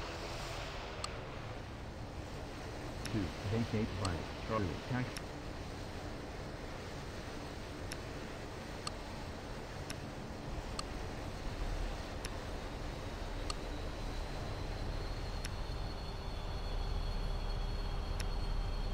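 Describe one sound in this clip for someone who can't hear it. Short, soft clicks sound again and again as game menus are tapped.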